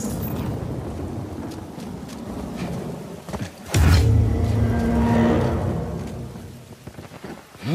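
Footsteps patter quickly as a character runs.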